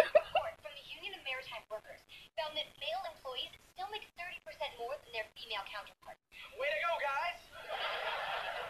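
A woman talks animatedly into a microphone.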